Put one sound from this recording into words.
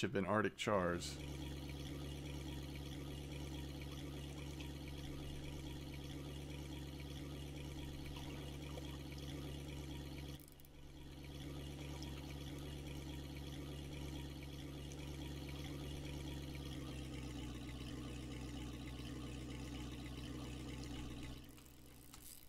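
A boat motor hums steadily, then stops.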